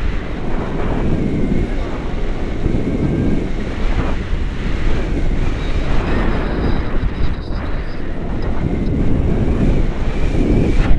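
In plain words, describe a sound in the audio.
A man speaks close by, raising his voice over the wind.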